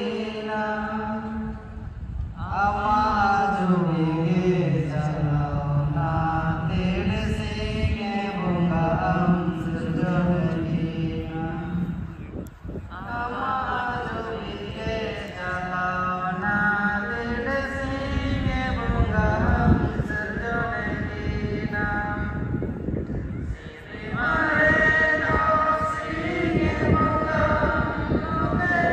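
A large crowd of women and men sings together in chorus outdoors.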